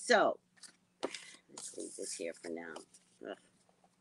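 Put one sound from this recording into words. Paper rustles in a woman's hands.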